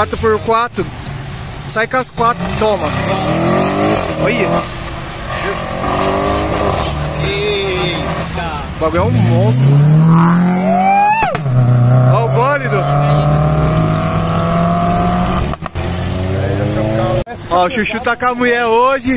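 Car engines roar and rev loudly as cars speed past outdoors.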